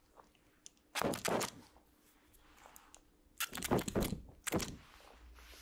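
A spray bottle hisses in short close bursts.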